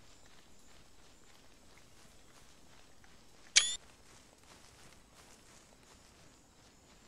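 Footsteps rustle through dense leafy undergrowth.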